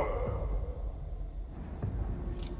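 A man growls angrily up close.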